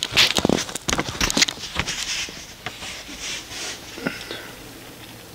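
Fabric rustles and knocks against a hard surface close by.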